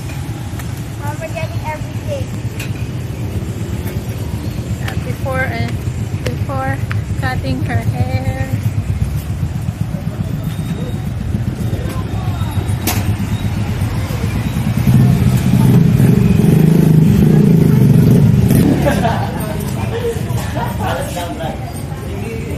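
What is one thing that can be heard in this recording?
A young girl talks brightly close by.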